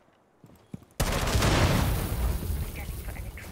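Rifle shots fire in a quick burst.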